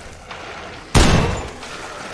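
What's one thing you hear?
A gunshot cracks sharply once.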